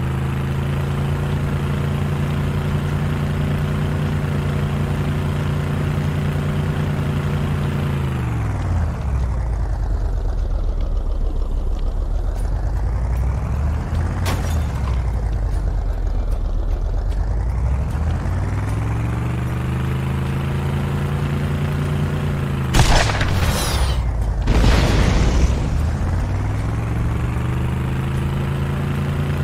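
A vehicle engine drones steadily, its pitch dropping and then climbing again as it slows and speeds up.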